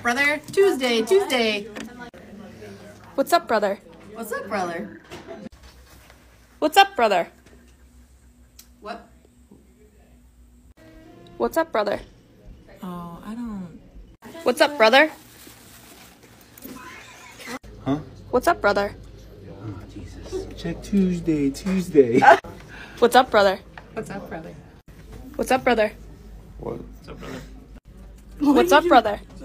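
Several women speak in short bursts, close by, with animation.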